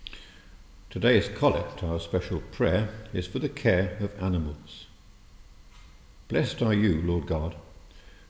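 A middle-aged man speaks calmly close by in a large echoing hall.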